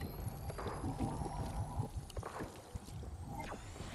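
A character gulps down a drink.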